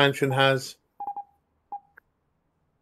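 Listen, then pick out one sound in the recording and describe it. Soft electronic beeps sound as a menu is scrolled.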